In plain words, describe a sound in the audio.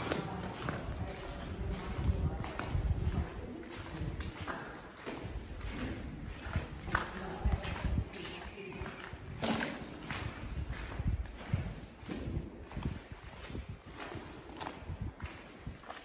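Footsteps crunch on gravel in an echoing tunnel.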